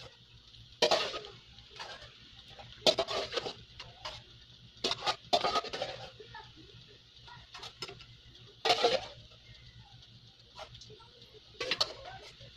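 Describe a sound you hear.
A metal ladle scrapes and clinks against a metal pot.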